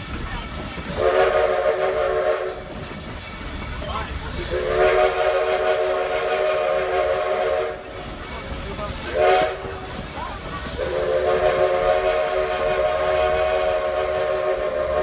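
A train whistle blows in long blasts.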